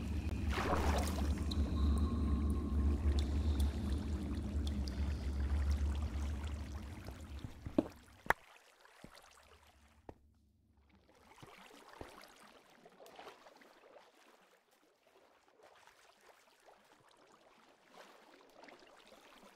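Water splashes as someone swims through it.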